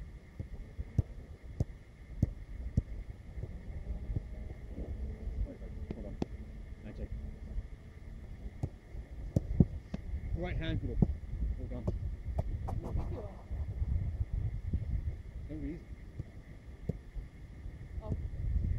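A football thuds off hands and feet.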